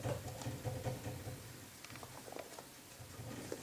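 Small claws patter softly on a wooden floor.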